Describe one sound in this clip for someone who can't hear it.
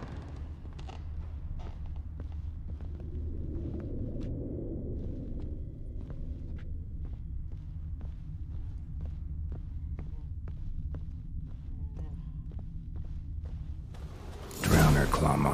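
Footsteps tap slowly on a wooden floor.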